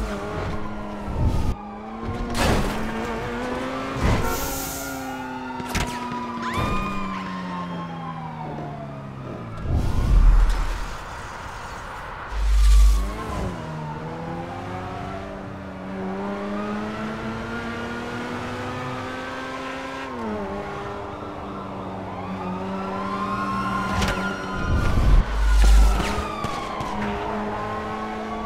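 A sports car engine revs and roars, rising and falling in pitch as it shifts gears.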